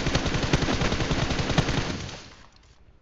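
A rifle fires.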